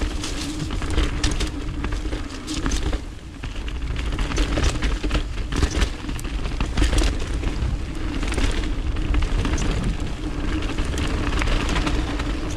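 Wind rumbles steadily past close by.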